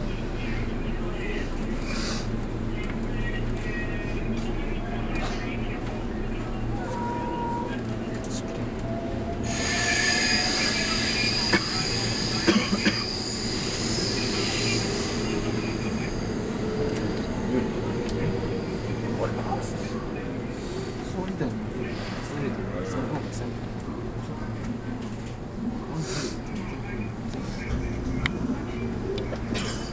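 A train rumbles steadily along the tracks, heard from inside.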